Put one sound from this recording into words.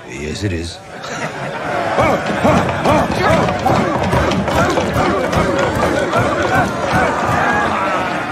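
A crowd of men sings loudly and rowdily.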